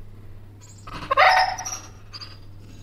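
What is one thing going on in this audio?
A dog whines sharply with excitement.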